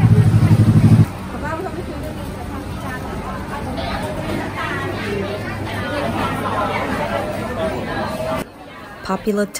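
A crowd of people chatters indoors.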